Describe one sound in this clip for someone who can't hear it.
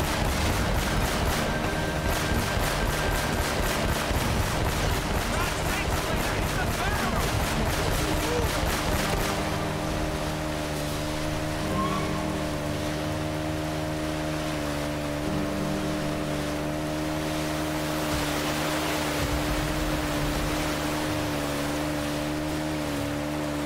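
Water rushes and splashes against a jet ski.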